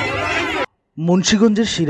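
A man shouts to a crowd outdoors.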